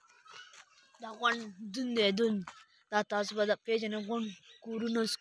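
A boy talks with animation close to the microphone.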